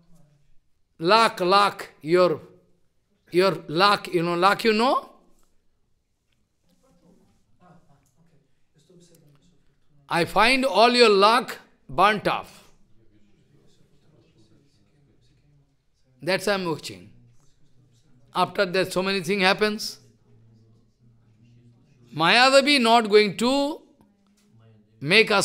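An elderly man speaks with animation into a close microphone, in bursts with pauses.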